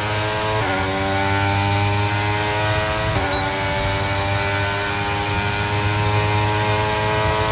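A racing car engine screams at high revs, climbing in pitch and dropping briefly as gears shift up.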